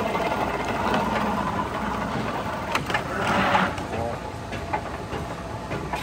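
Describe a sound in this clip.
A suitcase's wheels roll and clatter.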